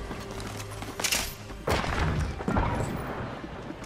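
Heavy thuds sound as a landing hits the ground.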